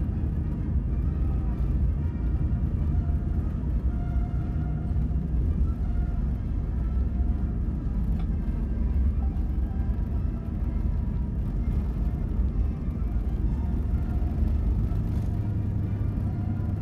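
Wheels rumble on the runway beneath the cabin.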